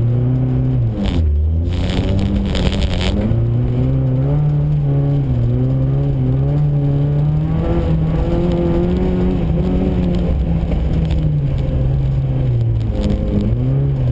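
Snow and ice spray against the underside of a car.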